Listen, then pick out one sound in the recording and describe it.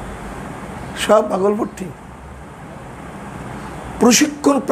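A man speaks calmly through a clip-on microphone, in short bursts.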